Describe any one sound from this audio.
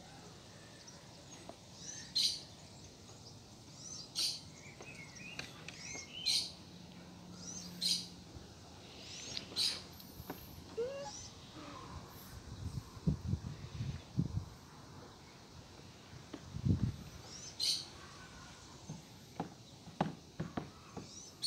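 A hen scratches and pecks in dry leaves nearby.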